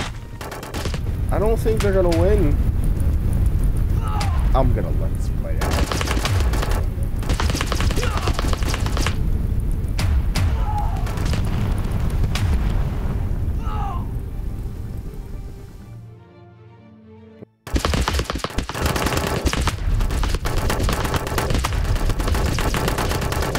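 Rapid gunfire and explosions boom and crackle without pause.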